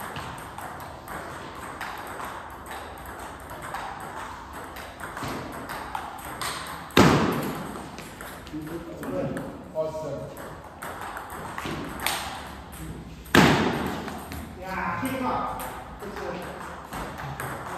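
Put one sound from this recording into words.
Ping pong balls click back and forth on tables and paddles in an echoing hall.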